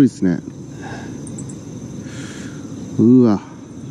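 A fishing reel whirs softly as its handle is turned.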